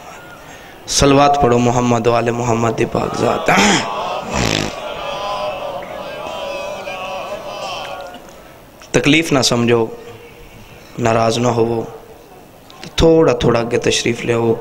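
A young man recites loudly into a microphone, heard through loudspeakers in a large echoing hall.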